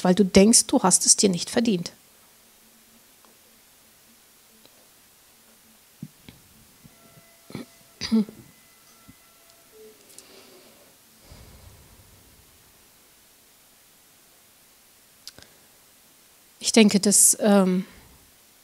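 A middle-aged woman speaks calmly into a microphone, pausing at length between phrases.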